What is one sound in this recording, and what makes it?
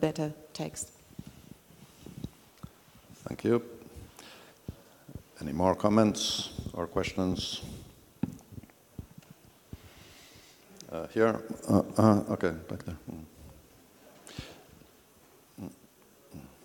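A middle-aged man speaks calmly through a microphone in a large echoing hall, with pauses.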